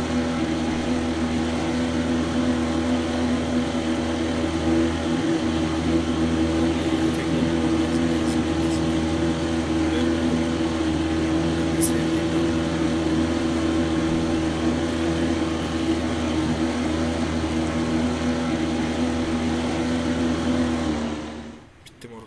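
A motorboat engine drones steadily, then cuts off.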